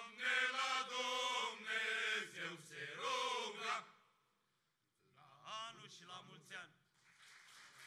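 A choir of men sings together through microphones.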